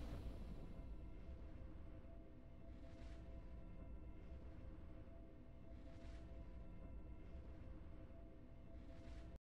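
Soft game music plays steadily.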